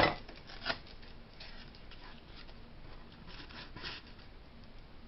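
Fingers brush and tap lightly against a hard ornament.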